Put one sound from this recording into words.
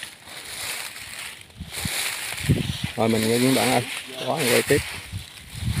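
Footsteps crunch through dry grass and leafy undergrowth.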